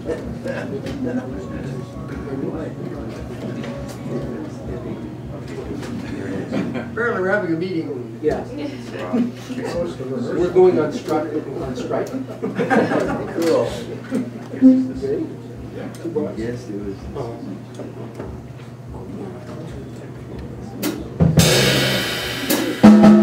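A saxophone plays a lively melody.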